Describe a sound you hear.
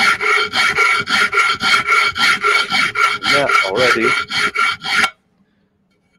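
A sharpening steel rasps in quick, even strokes against a blade.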